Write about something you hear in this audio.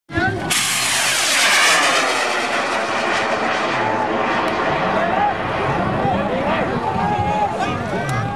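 A rocket roars loudly as it launches and climbs.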